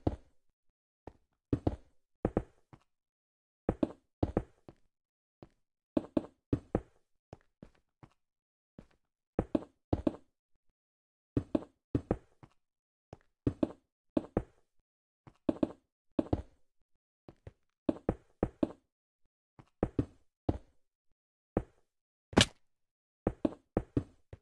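Stone blocks thud and click as they are placed one after another.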